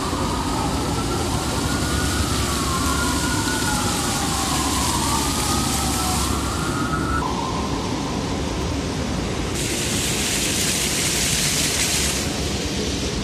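Water jets from a fountain splash and patter onto stone.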